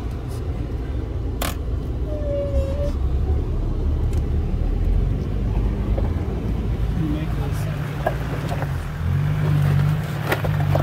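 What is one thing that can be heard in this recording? Tyres crunch and bump over loose rocks.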